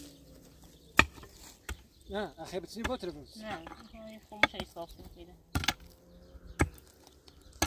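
Picks strike hard, stony soil with sharp thuds.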